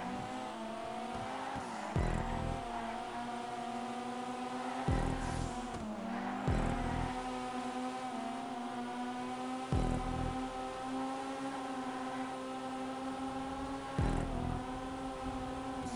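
Tyres screech on asphalt through the bends.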